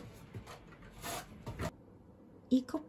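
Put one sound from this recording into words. A paper bag rustles and crinkles in a hand.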